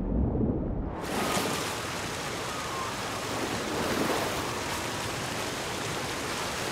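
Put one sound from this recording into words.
Water splashes as a swimmer surfaces and swims.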